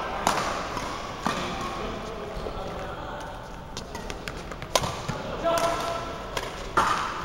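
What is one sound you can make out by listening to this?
Badminton rackets sharply hit a shuttlecock back and forth in a large echoing hall.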